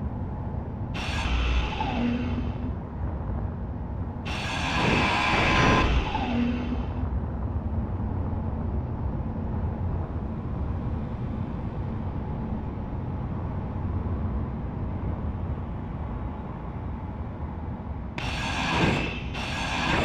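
A power grinder screeches against metal in short bursts.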